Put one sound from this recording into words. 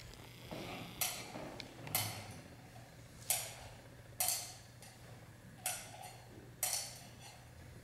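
A metal censer chain clinks in sharp, regular strikes.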